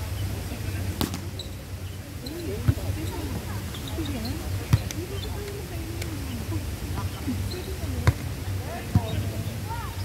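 A volleyball is struck with sharp slaps, again and again.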